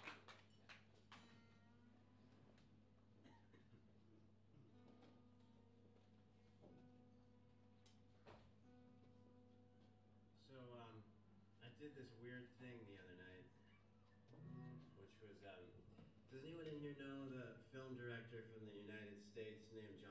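An acoustic guitar plays soft, ringing notes.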